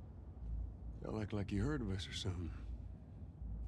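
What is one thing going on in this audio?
A man speaks calmly and low nearby.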